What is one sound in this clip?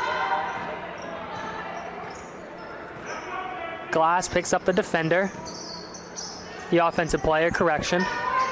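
A small crowd murmurs in a large echoing gym.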